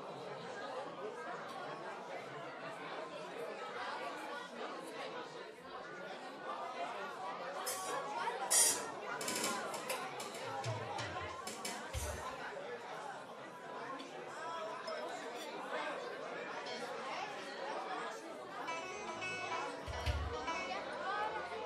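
A crowd of children chatters and calls out nearby.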